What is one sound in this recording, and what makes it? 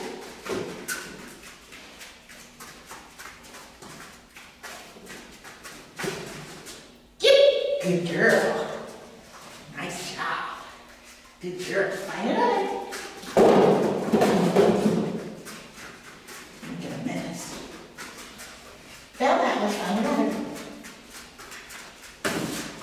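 A dog's claws tap on the floor.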